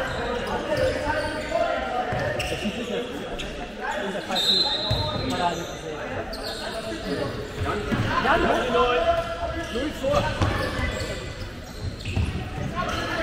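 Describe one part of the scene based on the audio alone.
A handball bounces on a wooden floor.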